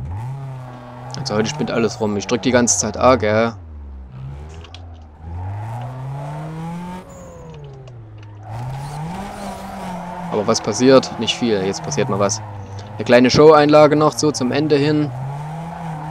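Tyres screech loudly in short bursts while a car drifts.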